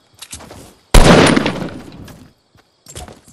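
A gun fires a single loud blast that rumbles away.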